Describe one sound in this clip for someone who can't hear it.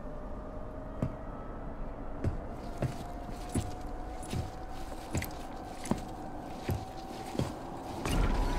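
Footsteps tread steadily on a hard surface.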